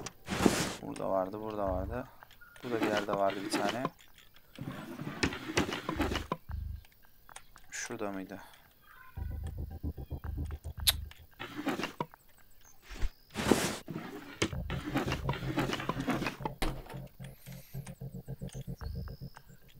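Wooden drawers slide open with soft knocks.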